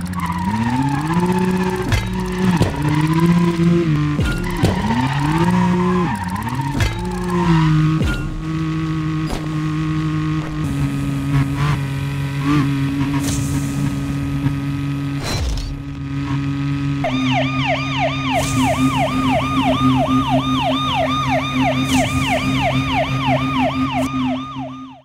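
A car engine roars and revs up and down at high speed.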